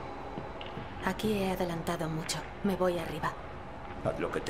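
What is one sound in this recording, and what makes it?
A young woman speaks calmly and politely.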